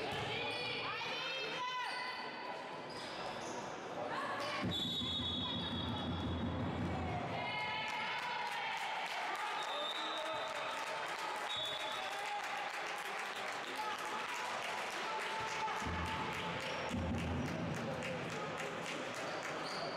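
Young girls shout and call out across a large echoing hall.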